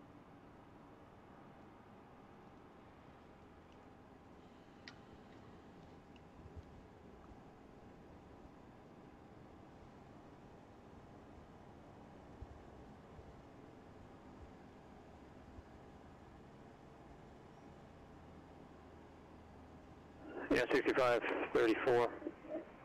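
A steady electrical hum drones inside an aircraft cockpit.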